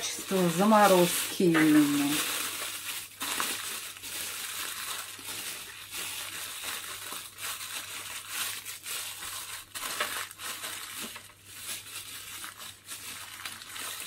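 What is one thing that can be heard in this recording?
A plastic bag crinkles as it is pressed and folded by hand.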